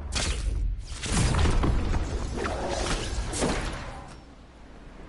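A loud whooshing burst sounds at the start of a fall.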